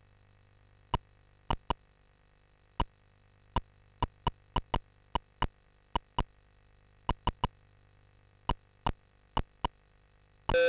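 Keyboard keys click one at a time as someone types.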